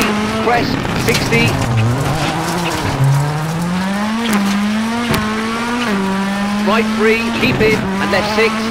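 A rally car engine roars and revs up and down through gear changes.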